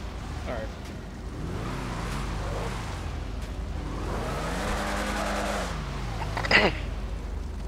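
A car engine revs in the distance.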